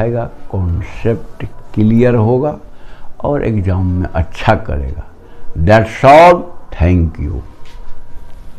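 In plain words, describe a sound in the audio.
An elderly man speaks calmly and close by, explaining.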